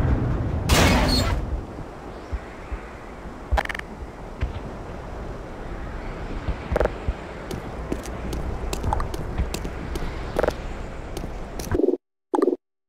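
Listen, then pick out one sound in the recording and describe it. Footsteps tread on a hard concrete floor.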